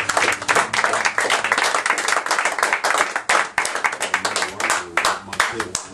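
Electric guitars strum loudly in a fast rhythm.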